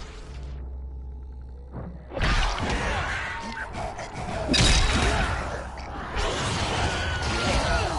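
A blade hacks into flesh with wet, squelching thuds.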